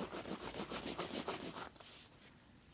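A wooden tool rubs quickly back and forth over leather.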